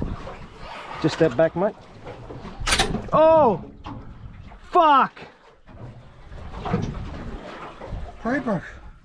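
A man whoops and shouts excitedly close by.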